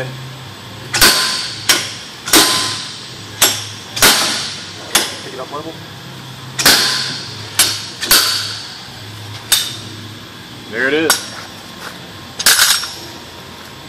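A slide hammer's steel weight slams sharply against its stop, metal on metal.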